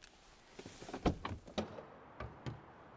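A car door opens with a click.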